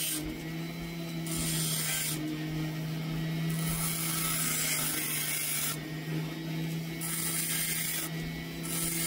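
A small rotary tool whines steadily.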